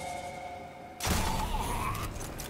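A rifle shot cracks and echoes.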